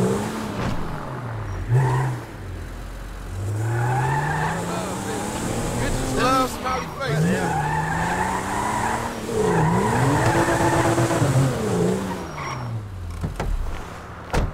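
A car engine revs up and down as the car drives slowly.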